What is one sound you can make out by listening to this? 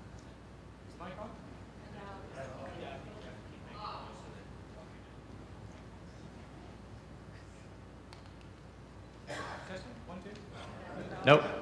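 A man speaks into a microphone over loudspeakers in a large hall.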